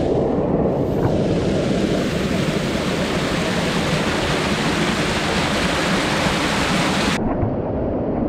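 A waterfall roars and churns close by.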